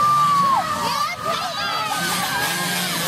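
Several small dirt bike engines rev loudly and whine as they race off.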